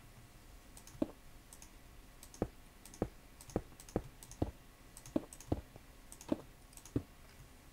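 Footsteps thud steadily on hard stone.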